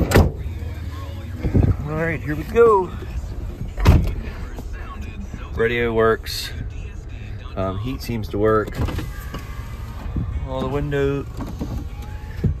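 Rain patters lightly on a car's windshield and roof.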